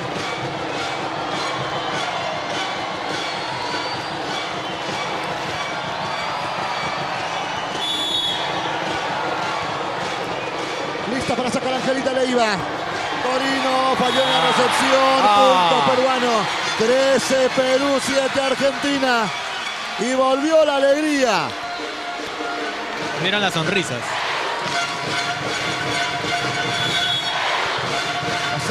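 A large crowd cheers loudly.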